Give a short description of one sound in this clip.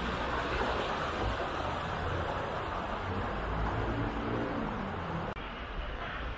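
Water rushes and splashes over rocks in a stream.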